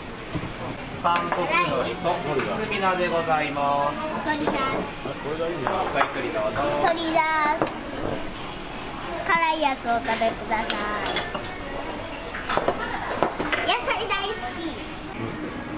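Meat sizzles on a tabletop grill.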